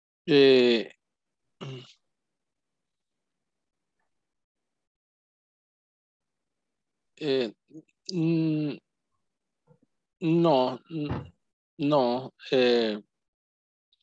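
A man speaks over an online call in short, halting phrases.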